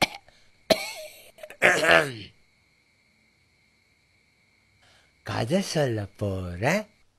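A man speaks in a silly, squeaky comic voice, close up.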